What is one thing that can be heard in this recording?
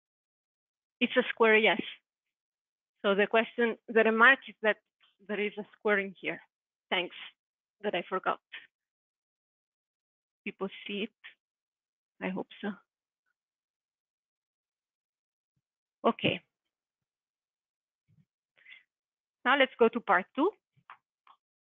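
A young woman speaks calmly and clearly, as if lecturing, in a room with a slight echo.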